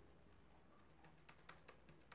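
Keys click on a keyboard.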